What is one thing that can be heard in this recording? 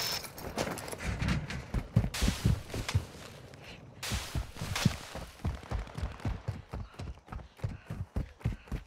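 Footsteps crunch quickly on dry dirt.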